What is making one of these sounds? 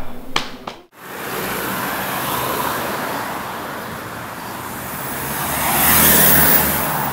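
Traffic and wind rush outdoors.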